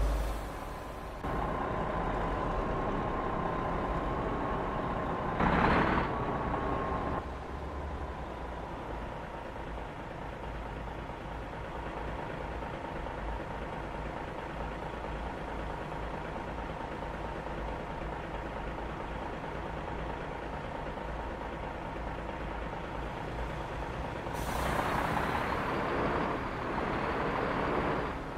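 A heavy truck engine drones steadily as it drives along.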